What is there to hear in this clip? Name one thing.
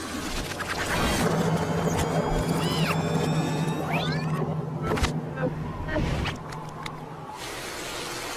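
Cartoon birds squawk and screech.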